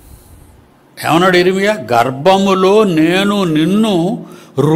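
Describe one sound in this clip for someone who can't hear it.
An elderly man speaks with animation into a microphone, close by.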